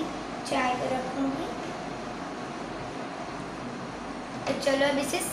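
A young girl speaks nearby in a high voice.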